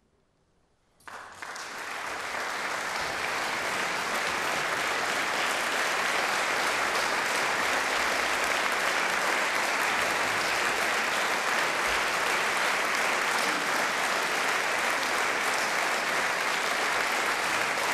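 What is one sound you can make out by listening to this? A large audience applauds loudly and steadily in a large hall.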